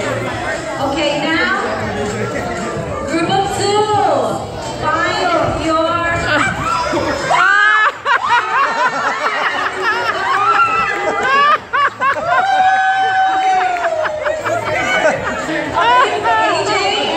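A crowd of adults and children shout and cheer in an echoing hall.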